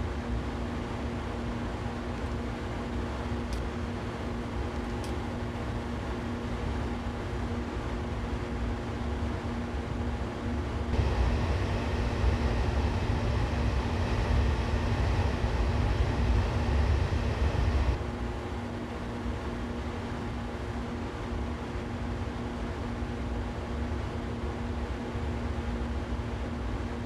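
An electric train's motor hums steadily from inside the cab.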